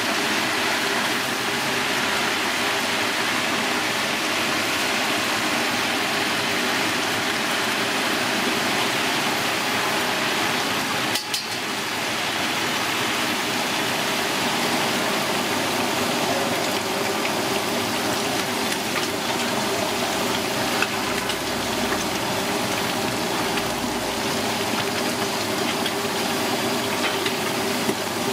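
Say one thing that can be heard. Metal tongs clink against the side of a pan.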